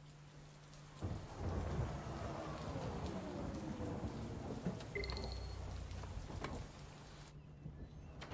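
A vehicle hums as it drives up and stops.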